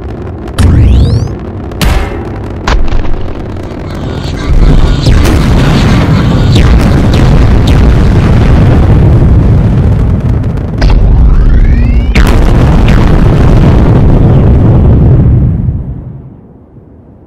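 Loud explosions boom and rumble, then fade away.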